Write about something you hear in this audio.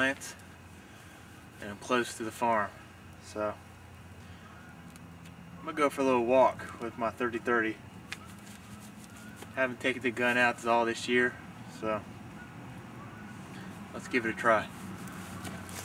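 A man speaks calmly outdoors, close by.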